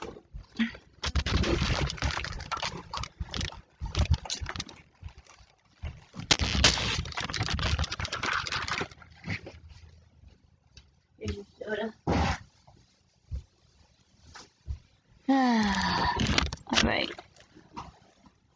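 Clothing rustles and bumps against the microphone as the phone is moved.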